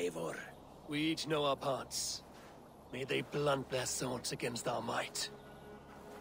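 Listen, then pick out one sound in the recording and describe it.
A deep-voiced man speaks calmly and firmly.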